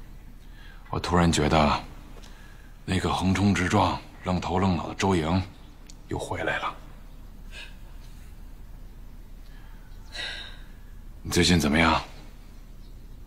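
A man speaks calmly and earnestly close by.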